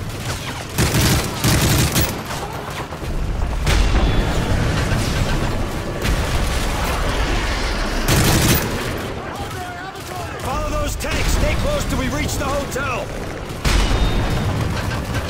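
Gunfire rings out in loud bursts.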